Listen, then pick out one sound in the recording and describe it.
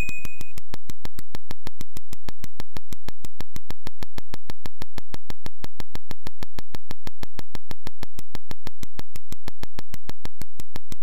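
Rapid, even electronic clicks tick as a game character digs through the earth.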